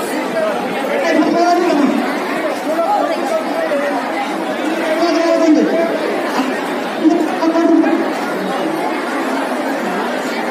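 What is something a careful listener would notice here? Men and women talk loudly close by.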